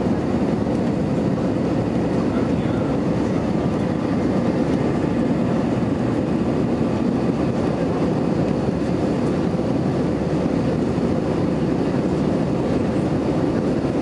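Jet engines roar steadily, heard from inside an airliner cabin.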